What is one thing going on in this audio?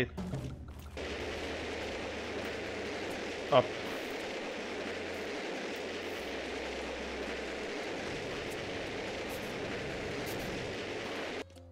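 A jetpack roars with a steady rushing hiss.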